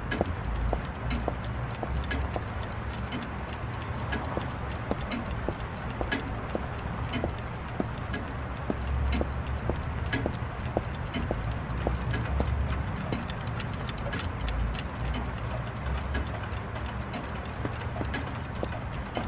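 Many clocks tick steadily.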